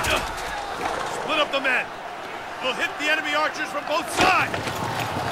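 A man speaks sternly, giving orders.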